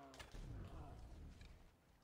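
A blade strikes flesh with a heavy thud.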